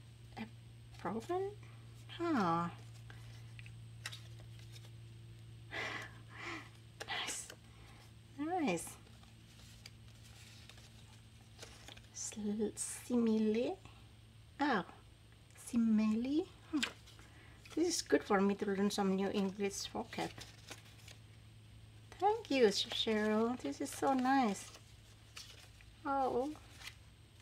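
Paper cards rustle and shuffle between hands.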